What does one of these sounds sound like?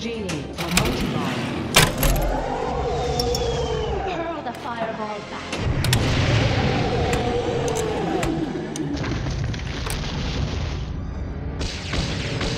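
Pinball flippers and bumpers clack sharply now and then.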